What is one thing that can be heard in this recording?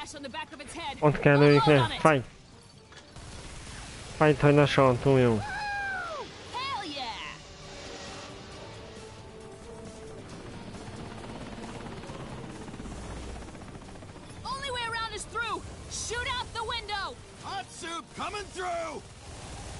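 A man talks with animation into a headset microphone.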